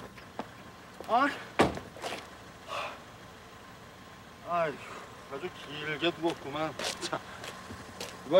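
A man speaks in shock.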